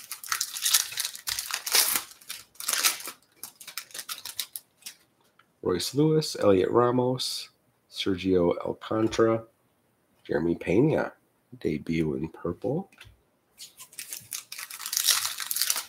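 A plastic wrapper crinkles and rustles as hands open it.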